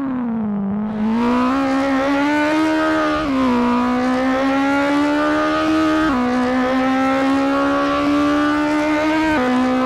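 A racing car engine revs hard and whines, dropping in pitch at each gear change.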